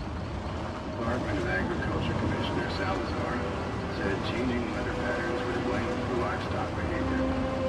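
A car engine rumbles as it drives over a bumpy dirt track.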